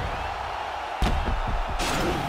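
A kick lands with a heavy thud.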